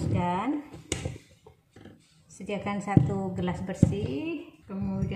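A glass cup is set down on a plastic board with a light knock.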